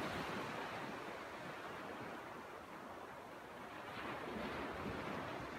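Small waves break and wash onto a sandy shore.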